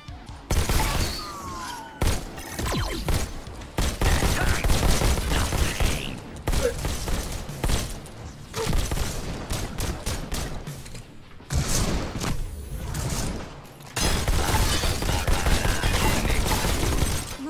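Video game gunfire and explosions crackle loudly.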